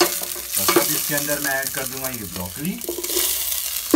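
Vegetables tumble into a sizzling pan.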